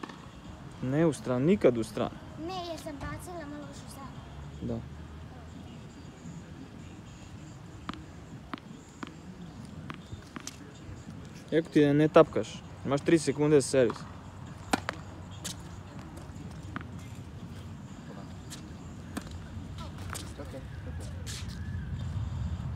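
A tennis racket strikes balls with sharp pops.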